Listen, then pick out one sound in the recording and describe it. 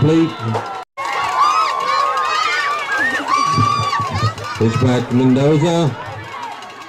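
A crowd cheers and screams outdoors.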